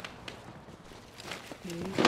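Gunfire cracks nearby.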